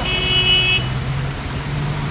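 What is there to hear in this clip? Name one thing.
Water sprays and gushes as a van ploughs through a flooded street.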